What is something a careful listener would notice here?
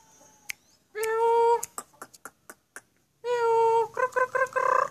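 A mynah bird gives loud, long whistles close by.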